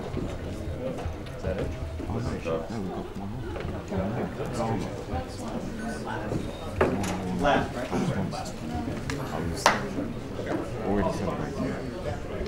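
A crowd of men chatters in a large room.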